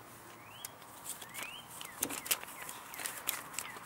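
Paper banknotes rustle softly as a hand counts them.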